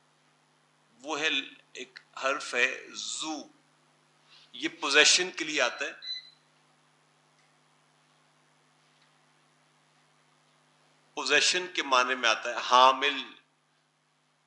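A man speaks calmly through a microphone, in short bursts with pauses.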